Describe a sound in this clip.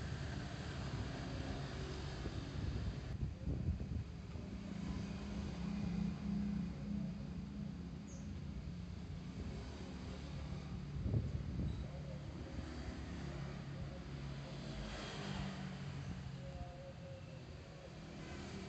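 Other motorcycles pass by.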